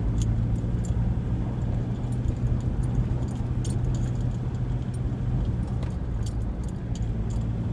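A car engine hums steadily from inside the cabin while driving.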